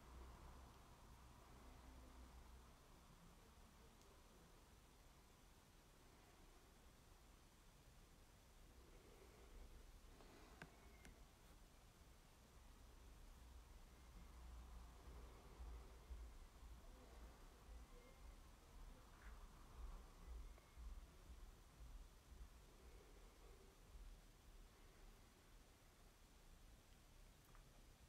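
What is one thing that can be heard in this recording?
A woman speaks softly and calmly, close by.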